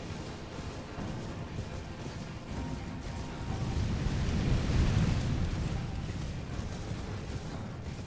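Hooves drum steadily as a horse gallops over grass.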